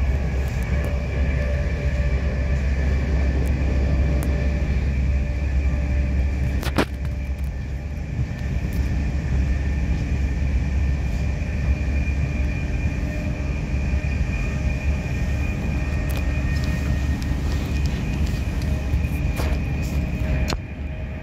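Rails click and clack beneath a moving train.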